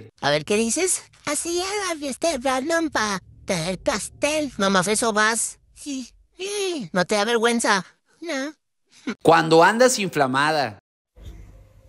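A little girl talks close by.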